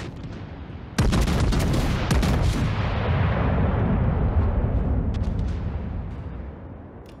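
Heavy naval guns fire with a sudden deep boom that rolls away slowly.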